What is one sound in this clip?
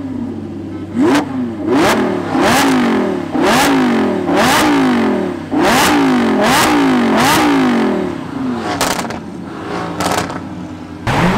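Exhaust pops and bangs crack out sharply between revs.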